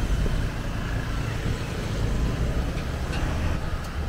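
A motor scooter hums past at low speed.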